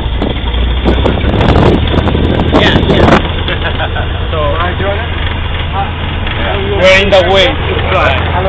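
A man speaks up close over the engine noise.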